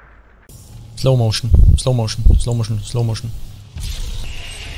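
A young man talks into a nearby microphone.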